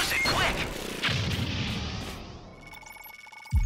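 A cloud of smoke bursts with a soft whoosh.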